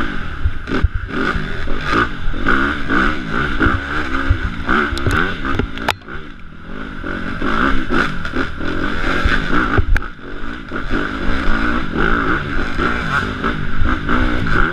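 Bicycle tyres rumble over a bumpy dirt trail.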